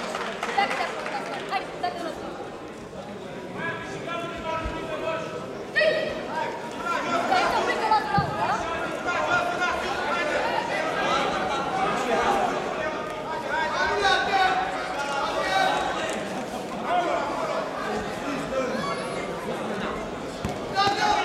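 Spectators and coaches shout and cheer in a large echoing hall.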